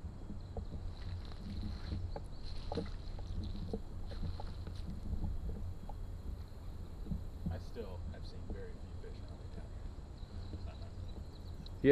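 A fishing reel clicks softly as line is wound in.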